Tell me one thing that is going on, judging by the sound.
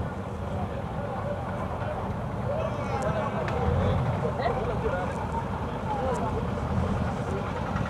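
A crowd of people chatters nearby on a busy street.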